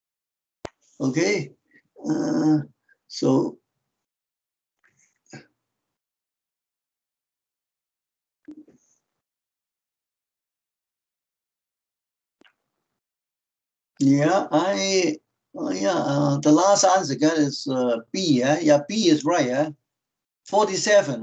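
An elderly man speaks calmly over an online call.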